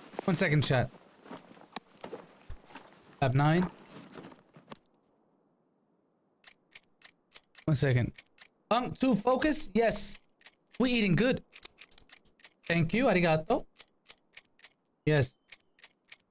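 A young man speaks casually and close into a microphone.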